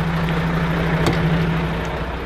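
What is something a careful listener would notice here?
A truck cab door slams shut.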